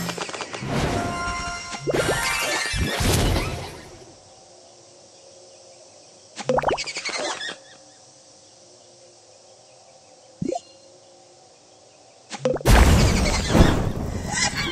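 Bubbles pop with bright, chiming game sounds in quick bursts.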